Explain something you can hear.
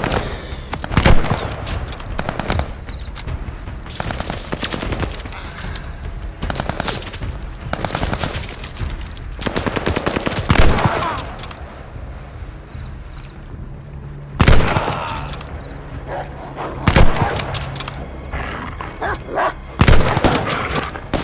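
A rifle fires loud, sharp shots now and then.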